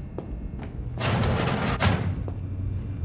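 A metal vent cover rattles and scrapes open.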